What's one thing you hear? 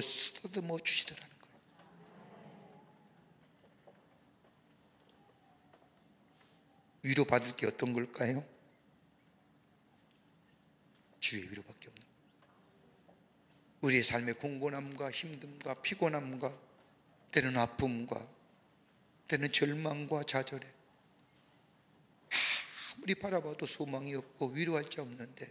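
An older man speaks slowly through a microphone, with long pauses between phrases.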